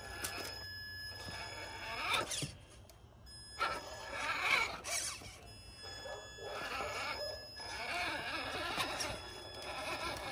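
A small electric motor whirs in short bursts.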